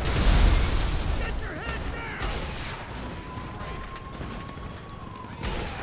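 A helicopter's rotor chops overhead.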